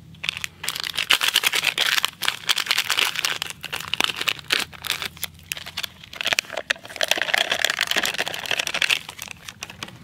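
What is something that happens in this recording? A foil packet crinkles and rustles as it is torn open.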